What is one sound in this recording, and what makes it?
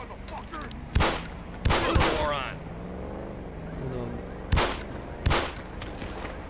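Pistol shots ring out sharply.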